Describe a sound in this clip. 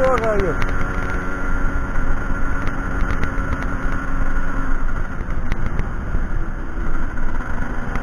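A motorcycle engine rumbles steadily while riding.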